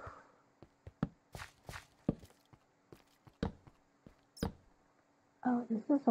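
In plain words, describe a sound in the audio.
Blocks are placed and dug with short, dull knocks.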